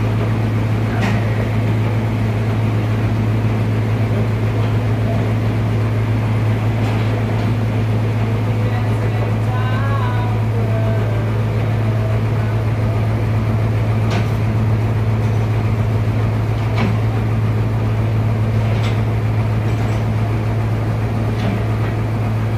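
A heavy wooden slab knocks and thuds against wood.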